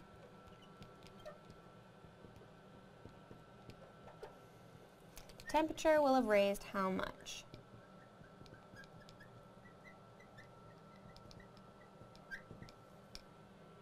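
A marker squeaks faintly on glass.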